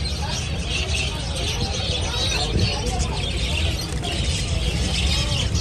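Many small birds chirp and twitter busily.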